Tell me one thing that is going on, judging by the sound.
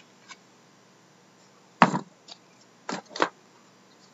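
Cards rustle against each other as hands handle them.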